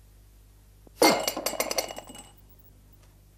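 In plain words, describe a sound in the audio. A fist bangs down hard on a wooden table.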